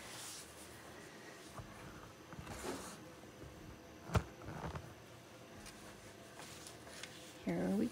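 Fabric rustles softly as a blanket is moved.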